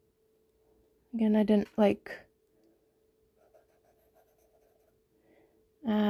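A cotton swab rubs softly on paper.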